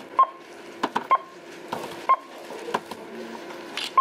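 Packages are set down on a counter with soft thuds.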